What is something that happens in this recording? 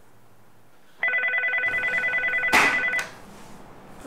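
A desk phone rings.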